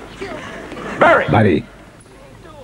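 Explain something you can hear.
A teenage boy speaks.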